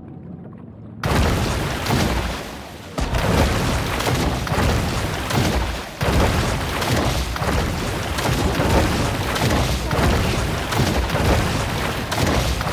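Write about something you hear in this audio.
Water splashes and churns as a shark swims fast at the surface.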